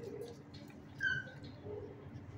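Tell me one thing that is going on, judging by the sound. A dog gives a short, high whine.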